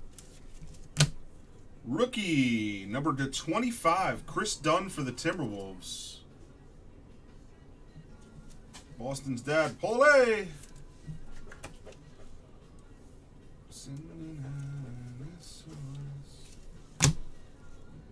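A hard plastic card case knocks onto a table with a sharp click.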